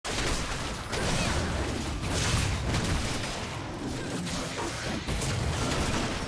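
Magic blasts and impacts crackle and burst in quick succession.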